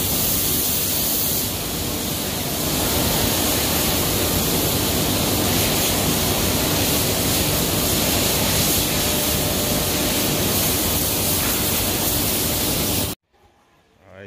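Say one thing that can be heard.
Woodworking machines roar loudly and steadily in a large hall.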